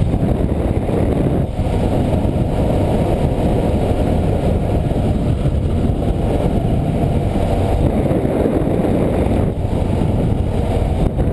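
A touring motorcycle engine hums while cruising.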